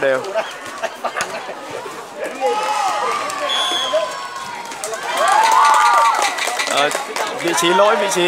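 A volleyball is hit with a slap.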